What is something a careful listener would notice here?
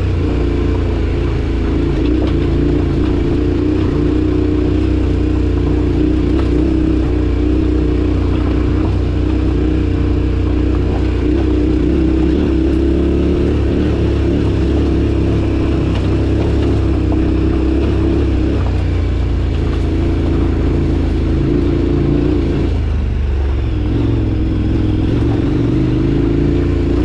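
Tyres crunch and rattle over loose stones.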